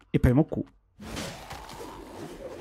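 A blade swishes through the air with a whoosh.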